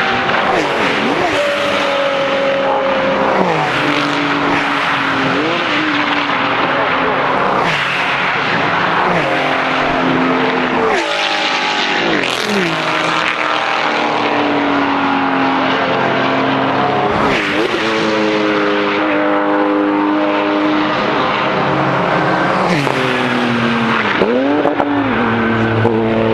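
Flat-six Porsche race cars roar past at full throttle, one after another.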